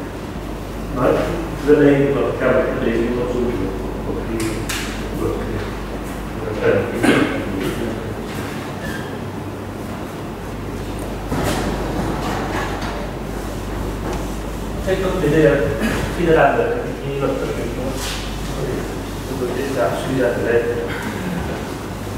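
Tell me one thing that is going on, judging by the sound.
A man lectures in a hall, speaking in bursts with pauses.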